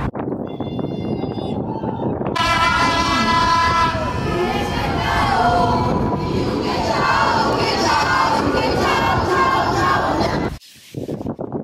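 A crowd of marchers chants and sings outdoors.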